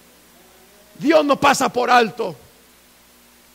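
A middle-aged man speaks briefly through a microphone.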